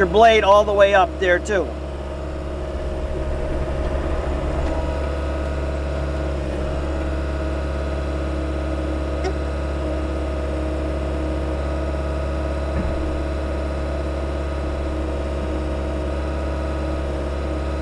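Metal tracks creak and rattle as a heavy machine rolls over dirt.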